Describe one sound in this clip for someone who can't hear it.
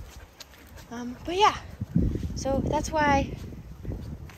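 A dog whines and yelps in high, rising cries.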